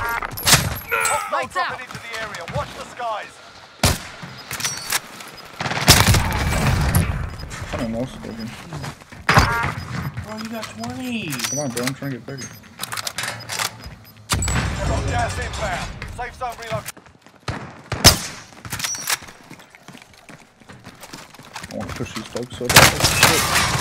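Gunshots bang sharply, several times.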